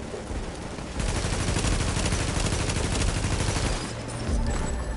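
Gunshots crack nearby.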